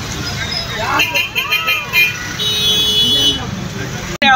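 Vehicle horns honk briefly.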